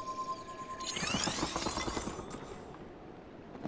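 Ice cracks and crackles as a block of ice forms.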